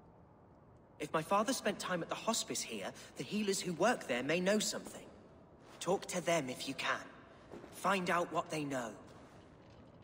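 A young man speaks calmly and earnestly nearby.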